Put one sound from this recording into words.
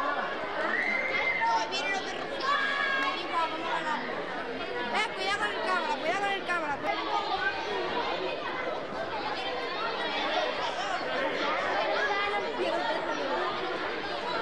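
Many children chatter and call out outdoors.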